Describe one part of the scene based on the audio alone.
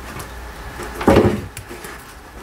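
A knife chops on a cutting board with a sharp knock.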